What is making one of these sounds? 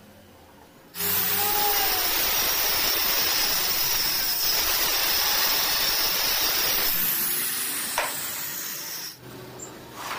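A power circular saw whines loudly as it cuts through a wooden board.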